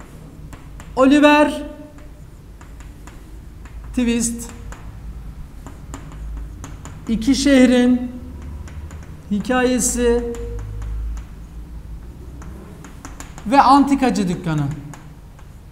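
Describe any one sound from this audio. A young man speaks nearby in short, slow phrases.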